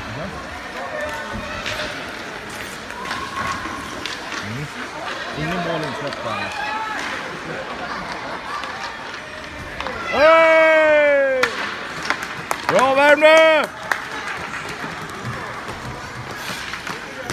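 Hockey sticks clack against a puck and the ice.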